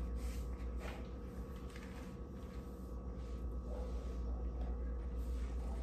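A woman scrubs a tile floor with a cloth.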